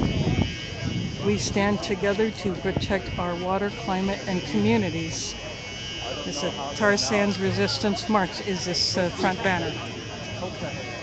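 A crowd of marchers chants loudly together outdoors.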